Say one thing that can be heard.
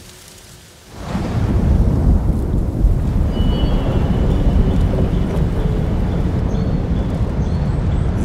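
A waterfall roars and splashes steadily.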